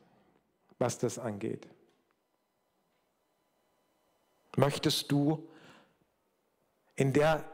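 An older man speaks with animation into a microphone, heard through a loudspeaker, in short bursts with pauses.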